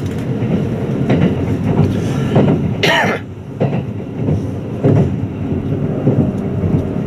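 An electric express train rumbles along the track, heard from inside a carriage.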